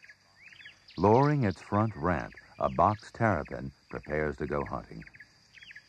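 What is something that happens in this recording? A turtle gives loud, deep, wavering calls.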